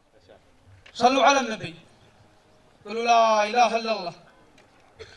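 A young man chants loudly through a microphone.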